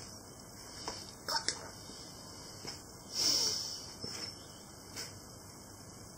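A plastic bowl knocks and creaks as it is shaken by hand.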